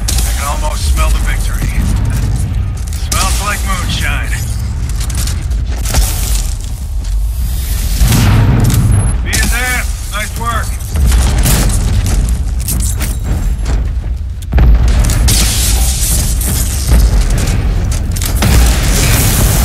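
Electric blasts crackle and boom.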